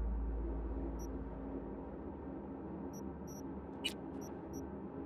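Short electronic menu beeps chime now and then.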